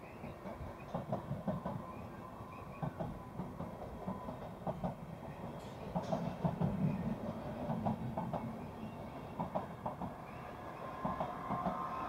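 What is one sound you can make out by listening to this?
A passenger train rolls past close by, its wheels clattering rhythmically over rail joints.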